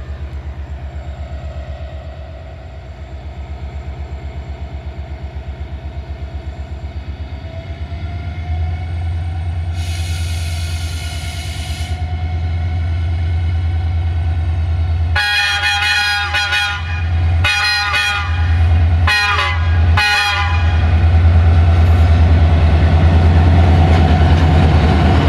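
A diesel locomotive engine rumbles with a throbbing beat, growing louder as it approaches.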